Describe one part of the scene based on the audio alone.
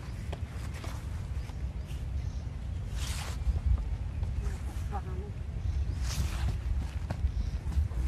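Young monkeys scamper and rustle through grass.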